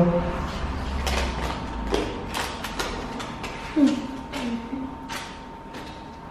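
Paper rustles and crinkles in a man's hands.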